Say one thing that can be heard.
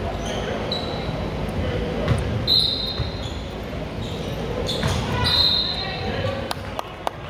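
A crowd of spectators murmurs and chatters in an echoing gym.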